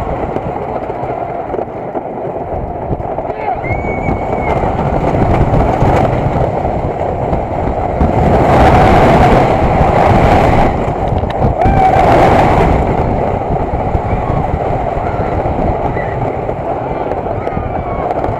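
Wind roars loudly past the microphone on a fast ride.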